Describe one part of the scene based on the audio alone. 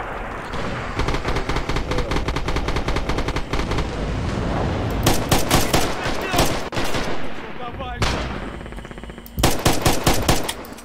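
An automatic rifle fires rapid bursts of loud shots.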